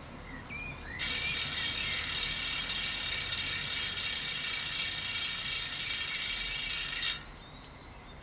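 A bicycle wheel's freewheel ticks and whirs as the wheel spins.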